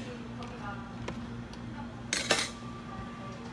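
A spoon stirs ice in a plastic cup, clinking.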